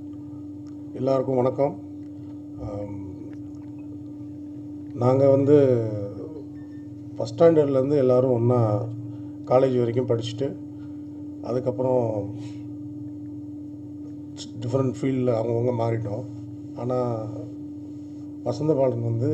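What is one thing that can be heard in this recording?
A middle-aged man speaks calmly through a microphone and loudspeakers, in a reverberant hall.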